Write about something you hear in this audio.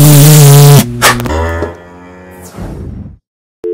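A young man shouts loudly and distorted, very close to the microphone.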